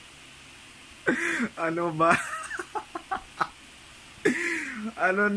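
A young man laughs loudly close up.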